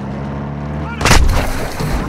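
A loud blast bursts suddenly.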